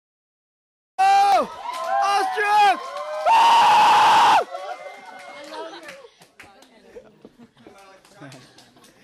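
A young man shouts with energy into a microphone over loudspeakers in a large echoing room.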